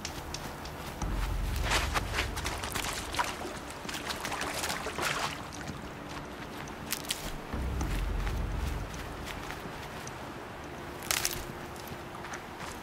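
Footsteps rustle quickly through grass and brush.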